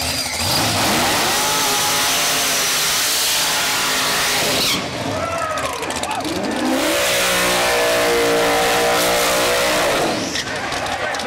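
A car engine roars loudly and revs as its tyres spin.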